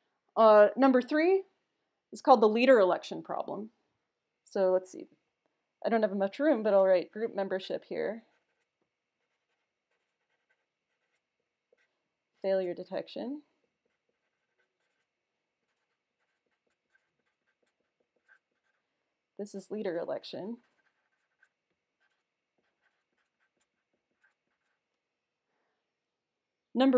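A young woman speaks calmly and clearly into a close microphone, in short bursts with pauses.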